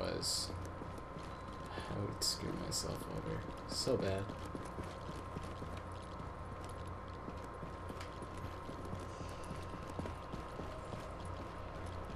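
Footsteps crunch over scattered debris on a hard floor.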